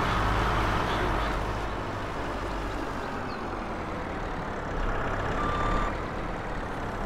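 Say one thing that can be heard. A forklift engine hums steadily as it drives along.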